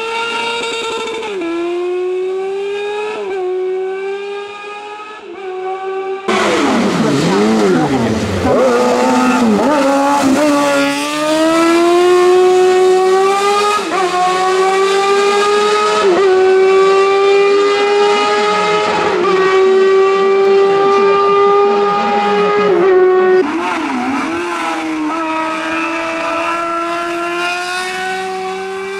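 A racing car engine roars at high revs, rising and falling as the gears shift.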